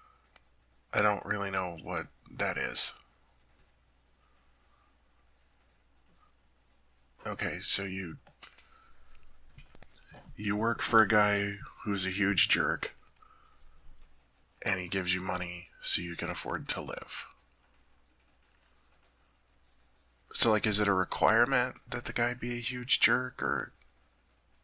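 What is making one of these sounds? A young man speaks softly and intimately, close to a microphone, in short phrases with long pauses.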